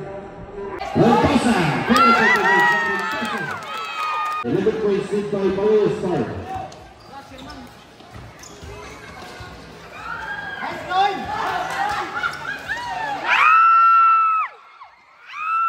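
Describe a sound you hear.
Sneakers squeak sharply on a hard court.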